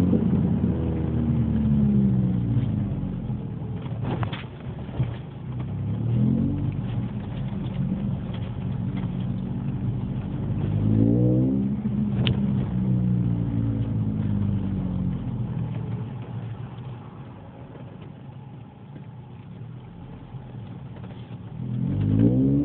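A car engine hums from inside the car, rising and falling in pitch as it speeds up and changes gear.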